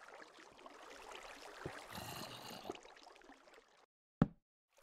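Water flows and splashes nearby.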